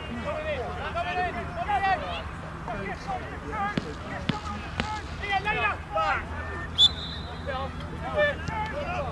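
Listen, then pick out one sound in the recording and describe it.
Children shout and call out across an open field outdoors.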